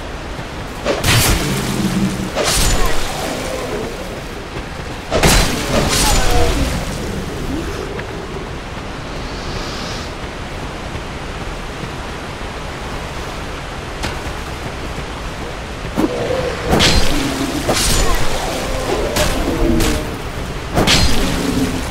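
Swords clash and strike in bursts of sharp hits.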